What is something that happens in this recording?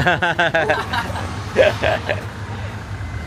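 A young man laughs loudly nearby.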